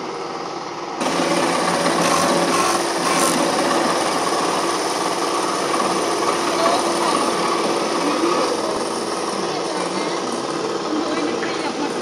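A sanding machine whirs steadily.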